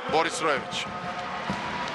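A handball bounces on a hard court floor.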